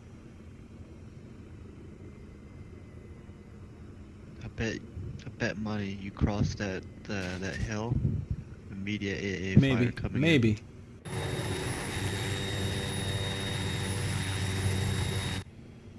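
A helicopter's rotor and engine hum steadily.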